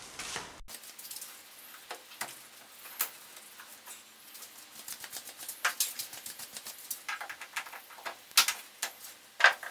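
A man's hands click and rattle loose plastic trim inside a car.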